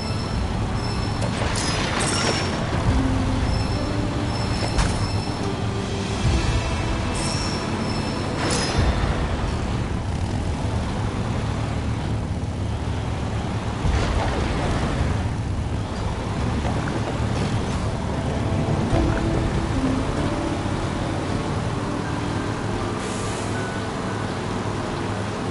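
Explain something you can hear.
A buggy engine rumbles steadily as it drives over rough ground.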